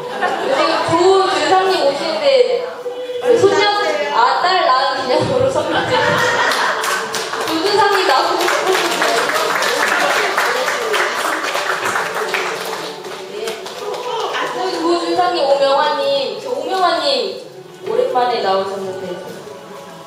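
A crowd of men and women chatter and laugh nearby.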